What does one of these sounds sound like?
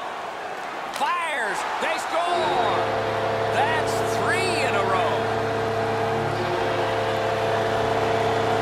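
A large crowd roars and cheers in an arena.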